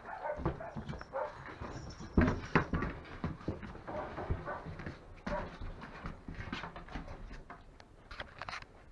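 Puppies whine and yelp close by.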